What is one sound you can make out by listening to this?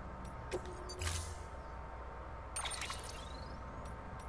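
A whooshing electronic swoosh sounds as a menu opens.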